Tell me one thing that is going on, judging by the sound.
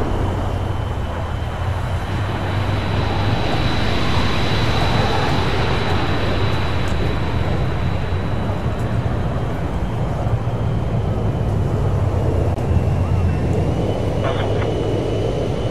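A jet plane roars low overhead and then fades into the distance.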